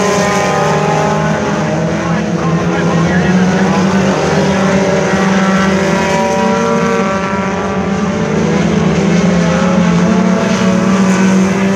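Many race car engines roar loudly around a dirt track, rising and falling as they speed by.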